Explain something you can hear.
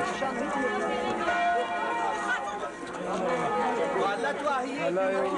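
A crowd of men and women chatter outdoors, many voices overlapping.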